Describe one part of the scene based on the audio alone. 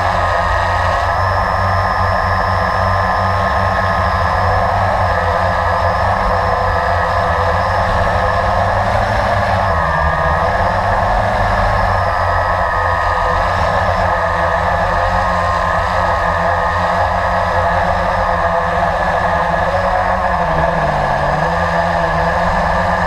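Drone propellers whine loudly and steadily up close, shifting slightly in pitch.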